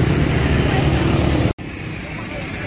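Motorbikes ride past on a road.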